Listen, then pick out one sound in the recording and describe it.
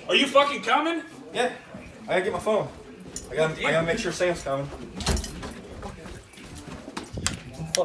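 Footsteps thud on carpeted stairs.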